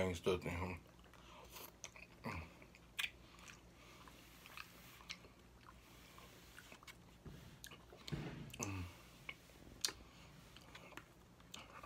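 A man chews food wetly and smacks his lips.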